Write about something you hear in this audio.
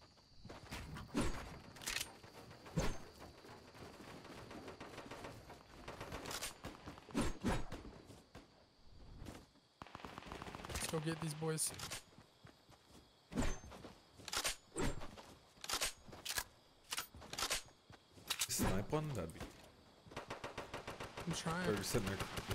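Footsteps patter quickly on grass and wood.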